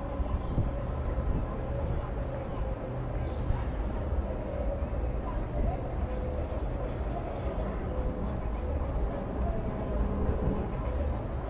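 A small boat's engine rumbles steadily close by.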